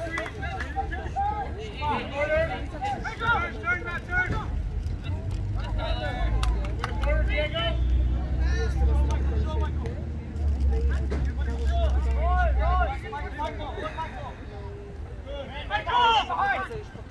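Young players shout and call out across an open field.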